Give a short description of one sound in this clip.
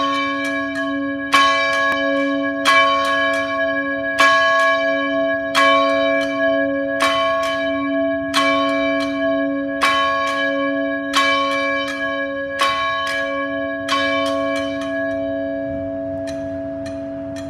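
Church bells ring out in a steady, repeating peal, then fade away.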